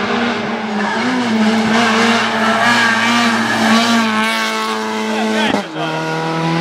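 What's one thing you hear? A rally car engine roars loudly as the car speeds past.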